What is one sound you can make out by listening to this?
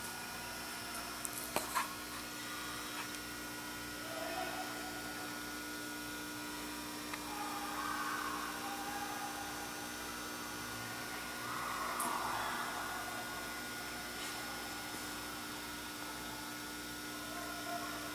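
A large ceiling fan hums steadily.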